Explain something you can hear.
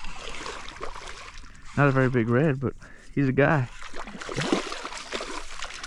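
A fish splashes and thrashes at the water's surface close by.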